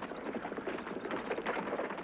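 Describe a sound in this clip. Horses gallop on a dirt road.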